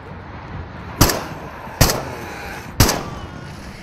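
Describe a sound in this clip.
A rifle fires several loud shots that echo briefly.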